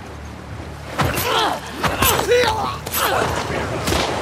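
Heavy blows thud during a scuffle.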